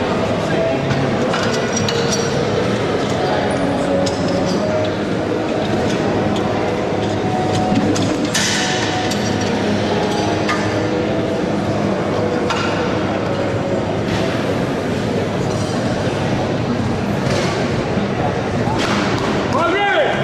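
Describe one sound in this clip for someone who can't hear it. Heavy metal weight plates clank as men unload a barbell.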